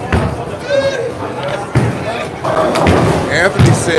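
Bowling pins crash and clatter.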